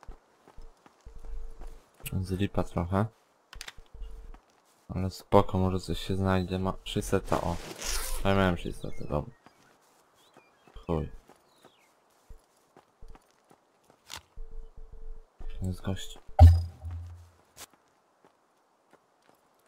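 Footsteps thud on the ground as a figure runs.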